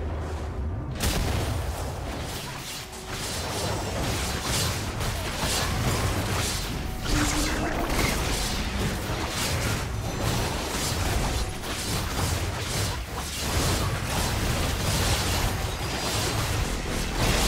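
Magic blasts and weapon hits crackle and thud in a busy fight.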